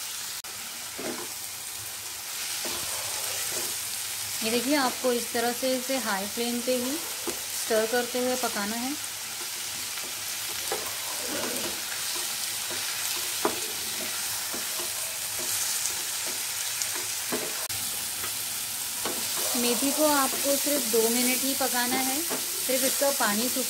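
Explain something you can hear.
A wooden spatula scrapes and knocks against a frying pan.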